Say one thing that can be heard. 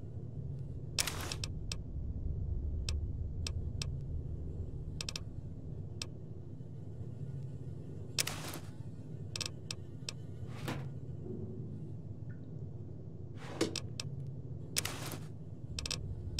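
Short swishing sounds play as items are taken.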